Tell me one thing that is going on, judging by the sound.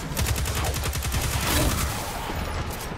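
Rapid automatic gunfire rattles.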